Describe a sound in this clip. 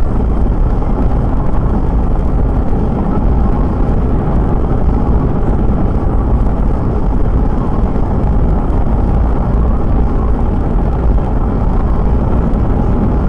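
A car engine hums steadily at speed.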